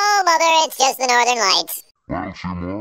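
A man calls out loudly.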